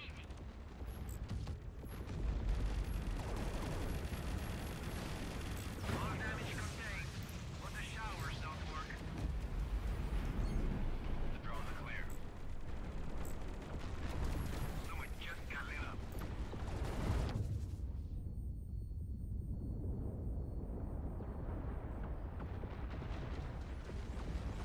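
A deep, steady rumble of ship engines drones on.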